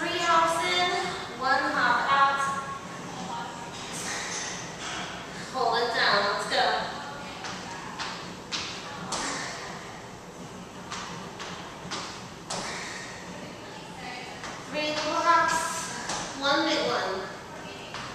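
A woman speaks with animation, giving instructions.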